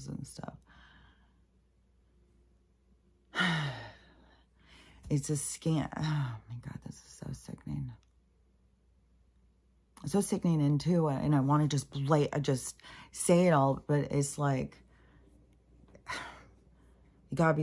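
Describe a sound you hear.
An older woman speaks close by, with pauses, in a thoughtful, animated way.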